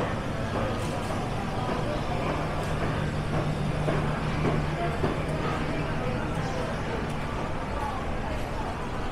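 A crowd of people murmurs and chatters indoors.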